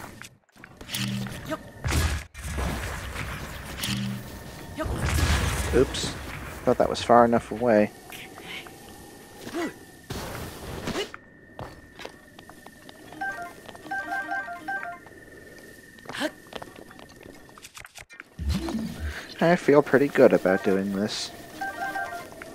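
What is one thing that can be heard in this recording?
Game sound effects burst and chime.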